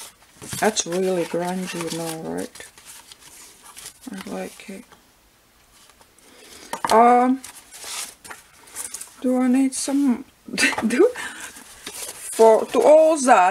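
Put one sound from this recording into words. Sheets of paper rustle as they are handled.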